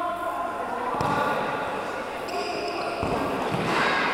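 A ball thuds on a hard floor.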